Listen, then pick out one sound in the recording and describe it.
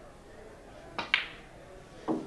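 A cue sharply taps a billiard ball.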